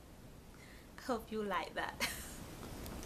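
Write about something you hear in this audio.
A young woman speaks cheerfully, close to a microphone.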